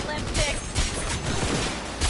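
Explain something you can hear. A blade swishes and slices.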